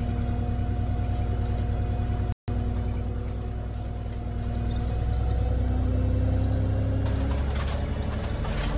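A bus engine hums steadily and rises in pitch as the bus speeds up.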